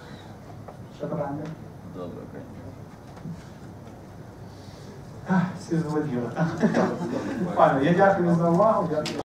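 A man speaks into a microphone over loudspeakers in a large room, pausing now and then.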